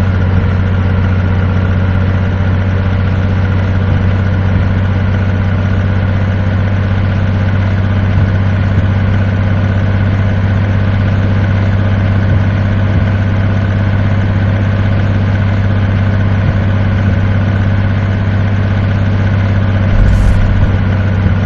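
A truck engine drones steadily at a constant low pitch.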